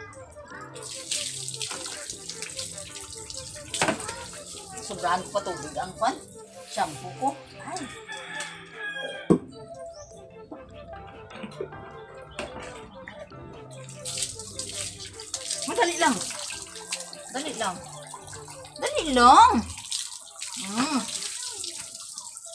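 Water splashes as it is poured over a dog.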